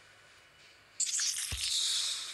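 A magical spell bursts with a loud shimmering whoosh.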